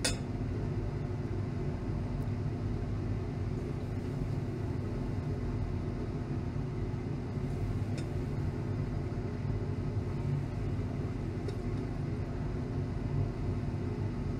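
A hot plate stirrer hums steadily.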